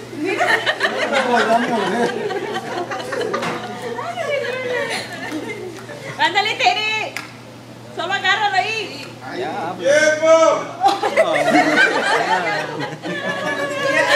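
A group of men and women laugh and chatter nearby.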